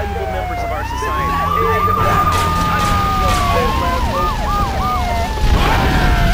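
A police siren wails close by.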